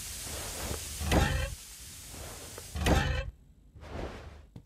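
A metal valve wheel creaks as it turns.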